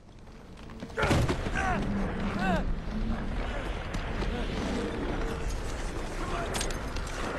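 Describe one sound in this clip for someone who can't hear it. A young man shouts urgently, close by.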